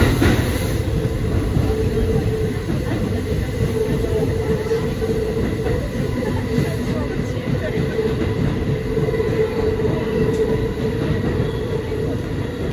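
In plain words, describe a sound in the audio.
Train wheels squeal with a steady whine on a curve.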